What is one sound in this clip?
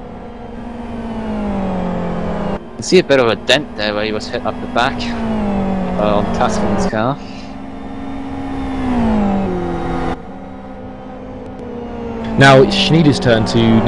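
A racing car engine roars at high revs, rising and falling as the car shifts gears.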